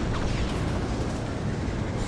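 Jet thrusters roar.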